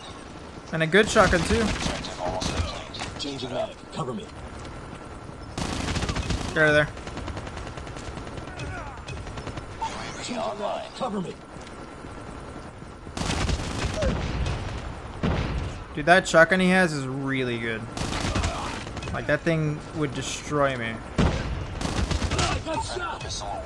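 Gunfire bursts out in quick rattling volleys.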